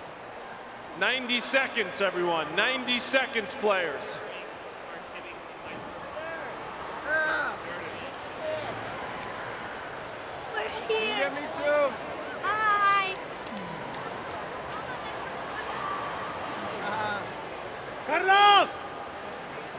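Excited children shout and squeal close by.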